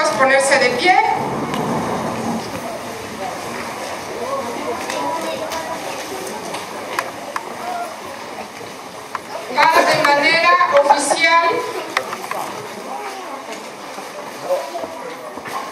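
A crowd murmurs and shuffles as people stand up.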